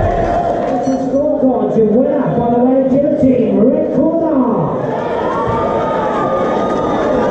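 A man announces through a loudspeaker microphone.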